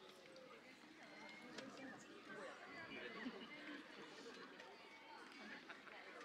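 A crowd of young people chatters nearby outdoors.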